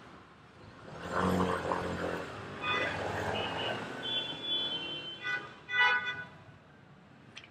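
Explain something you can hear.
A motorbike engine rumbles as it rides past close by.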